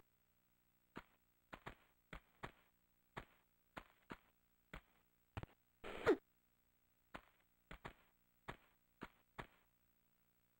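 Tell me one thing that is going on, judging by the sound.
Light footsteps patter quickly on a stone floor.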